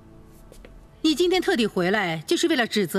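An older woman speaks firmly and close by.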